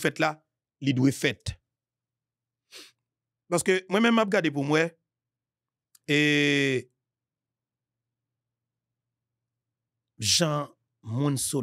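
A man speaks into a close microphone with animation, in short bursts and pauses.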